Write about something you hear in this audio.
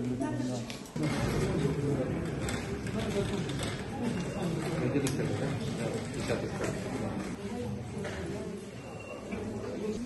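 People talk in the background of an echoing hallway.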